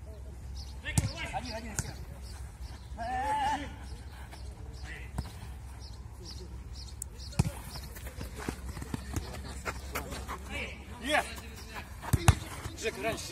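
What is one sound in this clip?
A football is kicked on artificial turf with dull thuds.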